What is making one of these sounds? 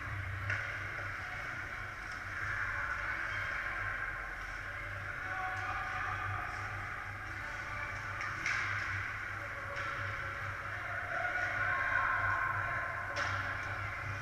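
Hockey sticks and pucks clack now and then.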